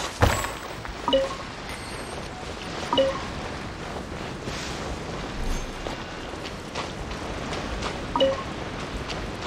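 Bright chimes ring out in short bursts.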